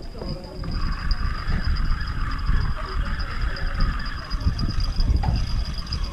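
A fishing reel whirs steadily as its line is wound in.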